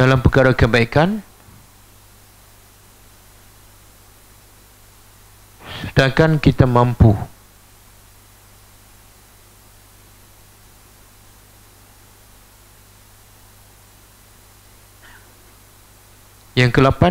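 A middle-aged man speaks calmly in short phrases through a headset microphone.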